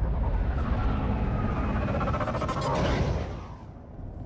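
A small flying vehicle whooshes past.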